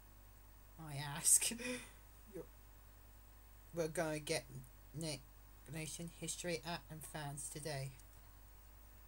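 A teenage boy talks casually into a nearby microphone.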